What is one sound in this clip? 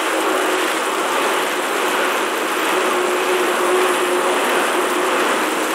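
An indoor bike trainer whirs steadily as someone pedals.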